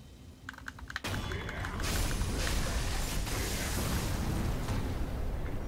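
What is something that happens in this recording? A loud explosion bursts and rumbles on.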